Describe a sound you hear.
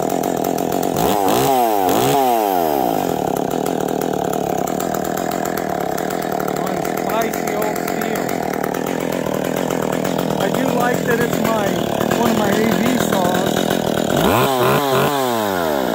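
A chainsaw engine revs up loudly and drops back.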